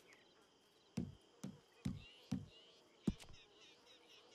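Short dull clicks sound as menu items are selected.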